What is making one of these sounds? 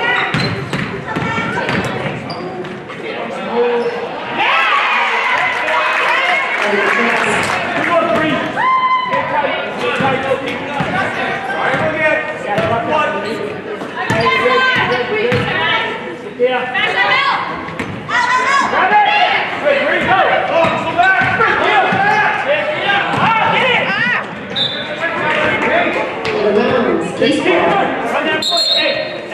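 A crowd talks and cheers in a large echoing gym.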